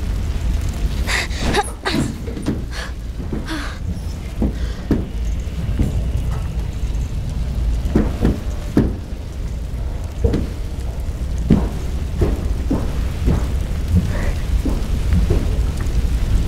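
Hands and knees knock and thump inside a metal duct.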